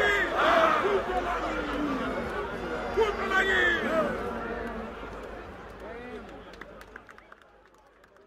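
A crowd of young men cheers and shouts loudly outdoors, then fades.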